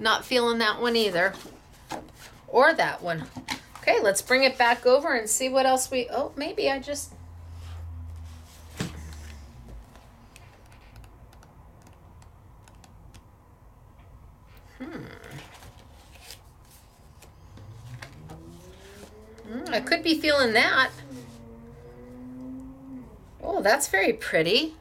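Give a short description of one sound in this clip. Sheets of card rustle and flap as they are handled.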